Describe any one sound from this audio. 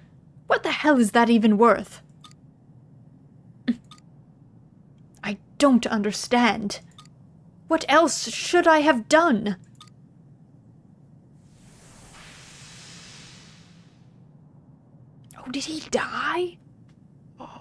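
A young woman speaks in a troubled, hesitant voice, close to the microphone.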